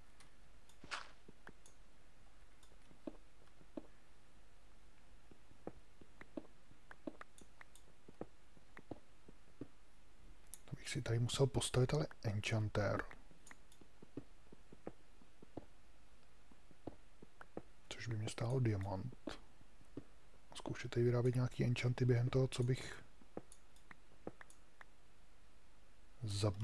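A pickaxe taps and chips at stone in short, repeated knocks.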